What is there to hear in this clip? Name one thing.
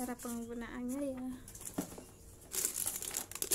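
Paper rustles in hands.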